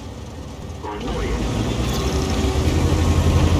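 A heavy tank engine revs up and roars as the tank drives off.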